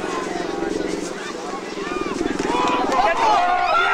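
Football pads clash as players collide.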